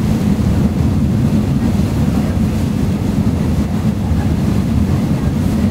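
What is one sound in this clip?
Water churns and rushes in a boat's wake.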